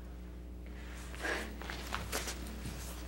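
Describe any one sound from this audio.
A young woman speaks urgently.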